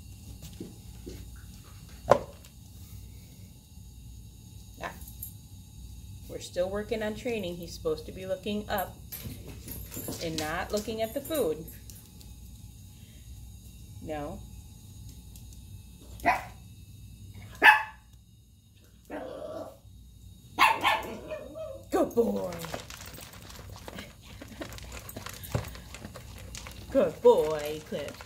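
A dog's collar tag jingles softly.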